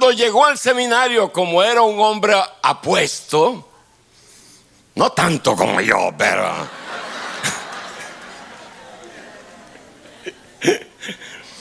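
An older man speaks with feeling through a microphone in a large room that echoes.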